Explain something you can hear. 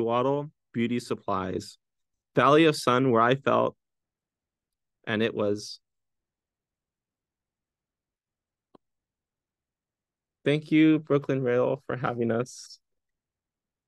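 A young man speaks calmly over an online call, in bursts with pauses.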